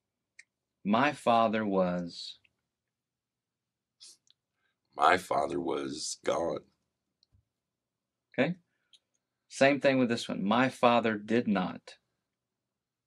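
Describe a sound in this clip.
A middle-aged man speaks calmly and warmly, close to a microphone, with pauses.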